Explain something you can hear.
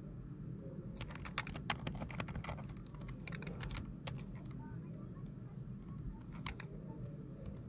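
Sharp clicks and metallic snaps from a video game come in quick bursts.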